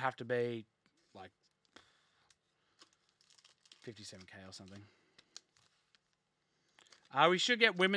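Cardboard packs rustle and crinkle in hands.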